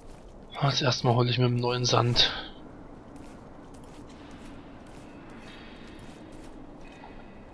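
Footsteps scuff softly on stone.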